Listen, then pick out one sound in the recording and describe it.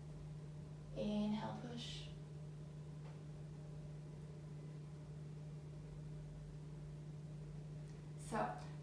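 A young woman speaks briefly and calmly, close by.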